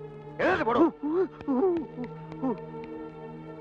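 A man cries out loudly nearby.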